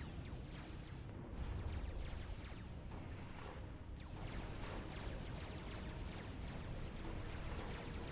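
Explosions boom and rumble in quick succession.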